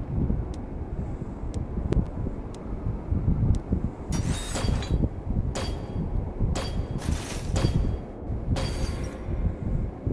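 A countdown timer ticks once every second, getting louder near the end.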